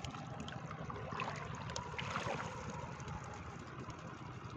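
Small wet fish patter into a box as a trap is shaken out.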